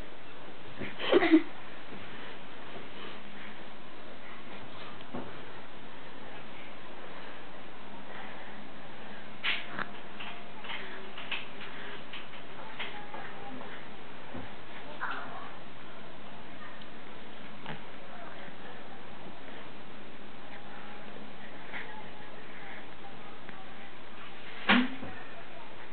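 A baby makes short cooing sounds now and then.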